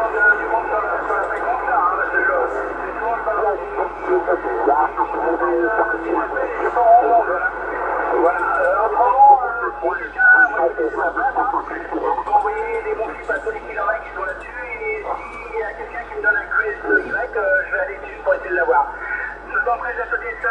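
Voices talk through a narrow, crackly radio loudspeaker.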